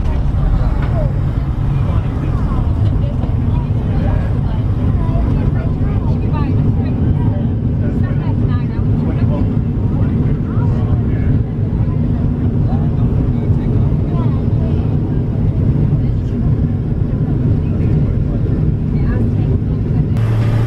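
Jet engines roar steadily from inside a plane cabin.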